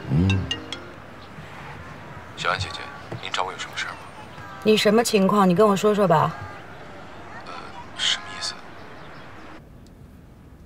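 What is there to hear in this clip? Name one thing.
A young woman talks on a phone in a calm voice.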